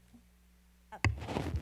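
Another woman begins speaking into a microphone.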